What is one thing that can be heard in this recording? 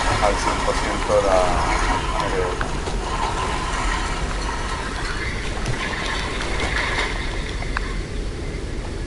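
Rushing water churns and splashes loudly.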